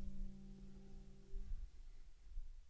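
A banjo chord rings out and fades.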